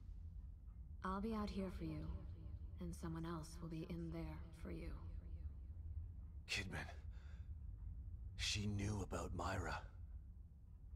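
A man speaks in a low, weary voice close by.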